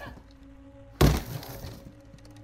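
A body thuds onto a wooden floor.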